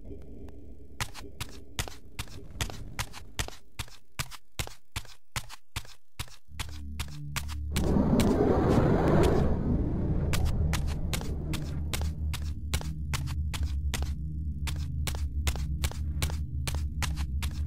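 Footsteps tap quickly and evenly on a hard stone floor.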